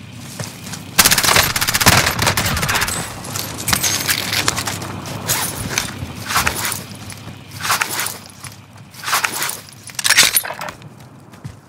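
Gunfire rings out in loud rapid bursts.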